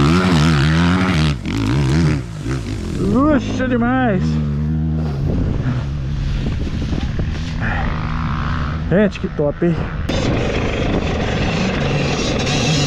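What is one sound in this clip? A dirt bike engine revs hard, rising and falling sharply in pitch.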